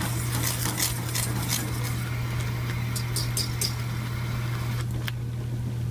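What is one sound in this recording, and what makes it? A wire whisk clinks and scrapes against a metal pan.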